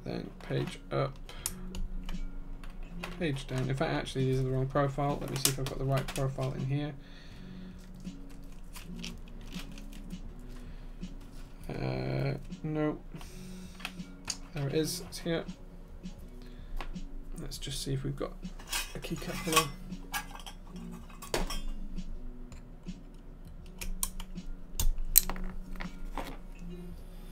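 Keyboard keys clack as fingers type.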